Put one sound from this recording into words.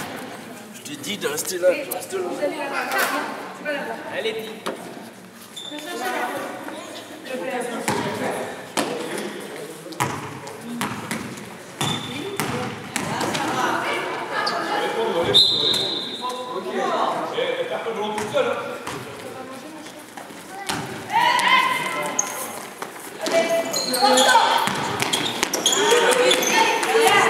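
A basketball bounces on a court with sharp thuds.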